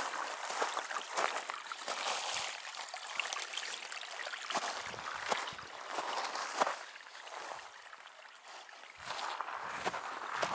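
Footsteps crunch on frosty grass and dry stalks.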